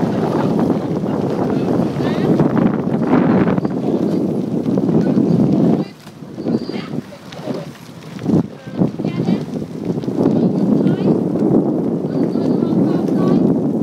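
Oars splash and dip rhythmically in water.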